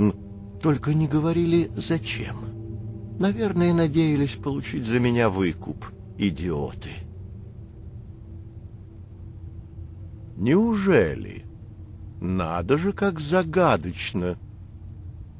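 A man speaks calmly and close by.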